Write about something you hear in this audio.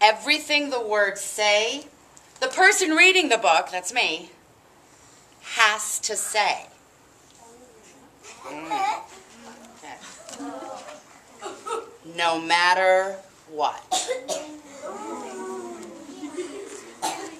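A woman reads aloud expressively, close by.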